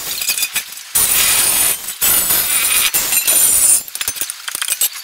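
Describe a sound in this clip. An angle grinder whines as it cuts into metal.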